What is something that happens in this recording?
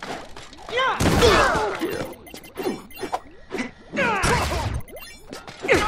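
Energy blasts whoosh and crackle loudly.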